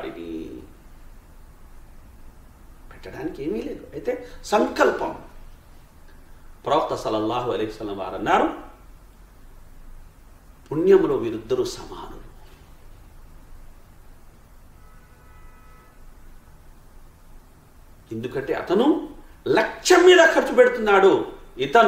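A man speaks calmly and with feeling into a close microphone, in short bursts with pauses.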